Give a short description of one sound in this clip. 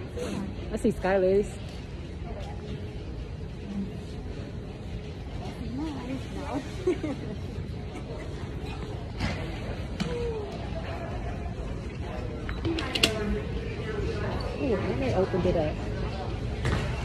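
A young woman speaks quietly and close by, muffled through a mask.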